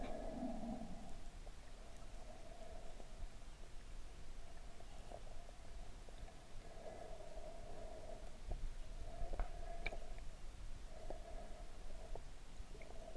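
Water washes and rumbles, heard muffled from underwater.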